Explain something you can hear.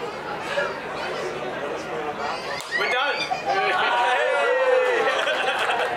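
A man talks and laughs cheerfully nearby.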